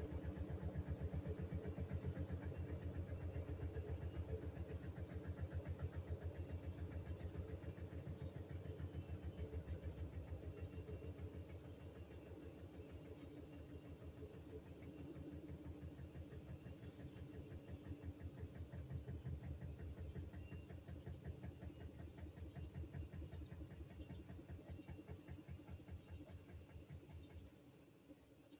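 A top-load washing machine whirs through its spin cycle with a fast, pulsing hum.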